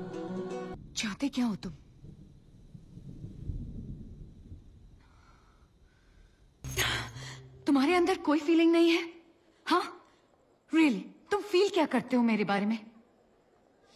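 A young woman speaks tearfully and urgently, close by.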